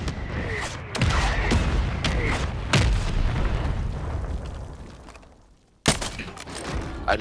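A rifle fires close by.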